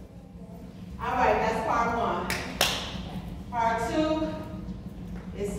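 A woman calls out instructions loudly in a large, echoing hall.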